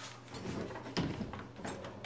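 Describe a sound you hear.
A metal door handle clicks as it turns.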